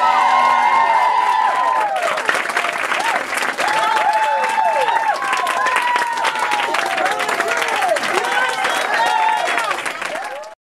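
A crowd whoops and cheers.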